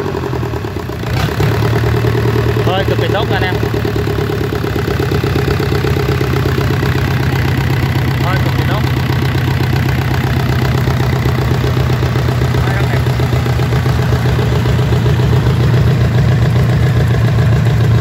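A four-cylinder marine diesel engine runs and revs up.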